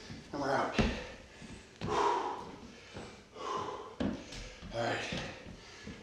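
Sneakers scuff and thud on a wooden floor.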